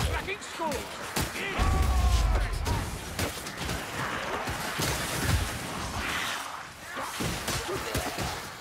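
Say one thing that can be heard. Creatures shriek and squeal as they are struck.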